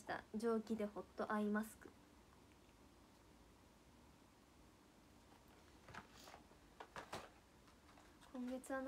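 A young woman speaks softly and close to a microphone, with pauses.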